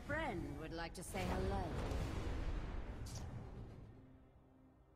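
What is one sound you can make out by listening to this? A magical portal swirls open with a deep whoosh.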